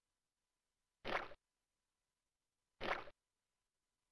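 A short whooshing game sound effect plays as a small creature jumps.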